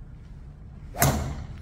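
A golf driver strikes a ball off a hitting mat.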